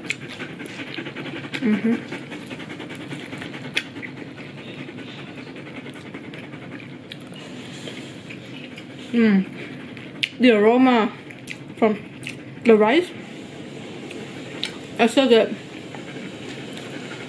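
A woman chews food noisily, close to the microphone.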